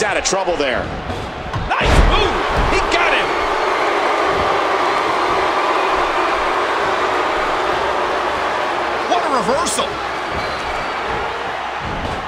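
A large crowd roars and cheers steadily in an echoing arena.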